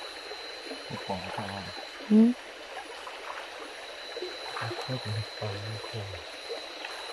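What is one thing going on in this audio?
A man talks briefly nearby.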